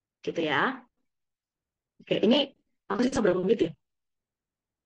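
A young woman speaks calmly and close to a microphone, as on an online call.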